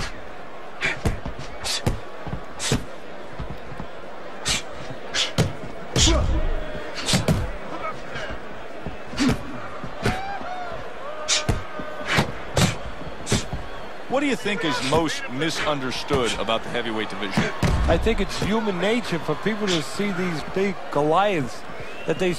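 Boxing gloves thud against bodies in sharp, repeated punches.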